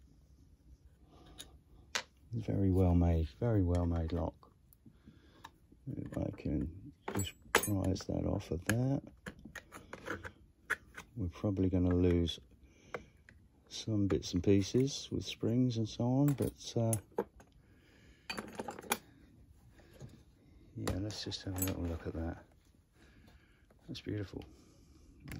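Small metal parts of a lock click and clack as they are handled.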